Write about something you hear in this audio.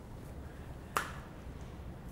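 A man claps his hands once.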